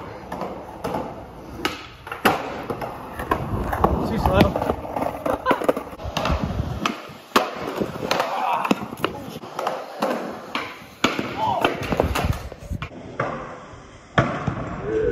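Skateboards clack and slap hard on concrete.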